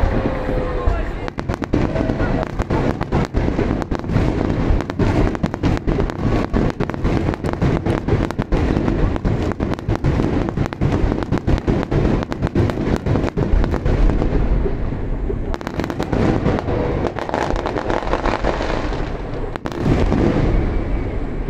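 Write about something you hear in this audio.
Fireworks burst overhead with booming and popping shells.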